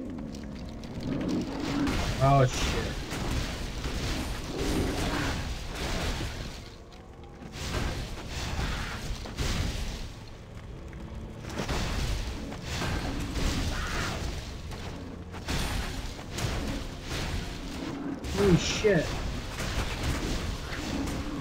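Game weapons clash and enemies shatter in bursts of impacts.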